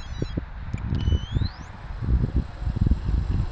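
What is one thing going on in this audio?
A model helicopter's electric motor whines and rises in pitch.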